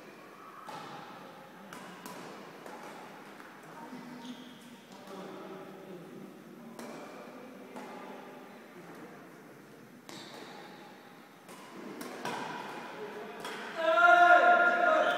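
Rackets hit a shuttlecock with sharp taps that echo in a large hall.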